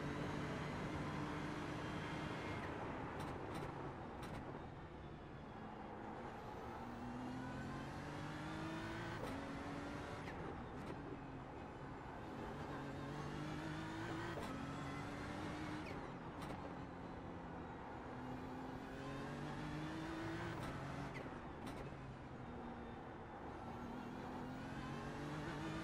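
A racing car engine roars close by, rising in pitch and dropping sharply with each gear change.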